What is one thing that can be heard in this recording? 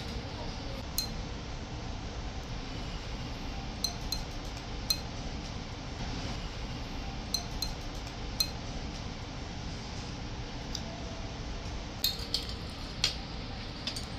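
Chopsticks clink lightly against a ceramic bowl.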